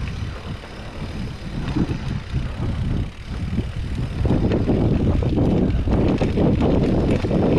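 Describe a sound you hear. Wind rumbles past outdoors.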